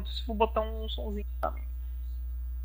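A young man speaks briefly into a microphone.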